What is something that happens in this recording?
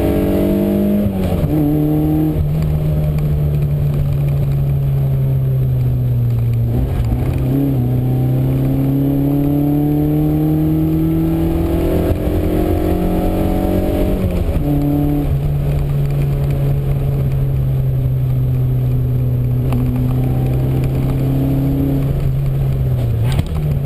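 A car engine drones loudly up close, rising in pitch and dropping with each gear change.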